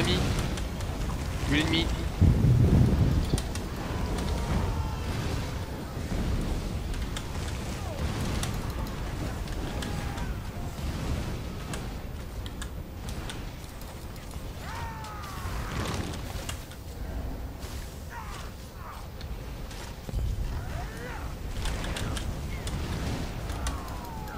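Swords and blows clash in a busy fight.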